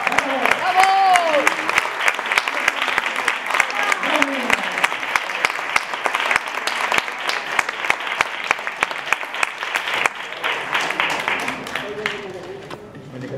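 Hands clap in sharp, quick rhythm.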